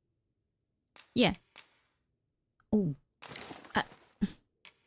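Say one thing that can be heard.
Short game menu sounds chime and swoosh.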